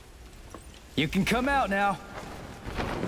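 A young man shouts out loudly.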